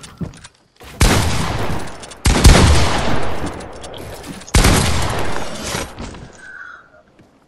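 Gunshots crack in rapid, loud bursts.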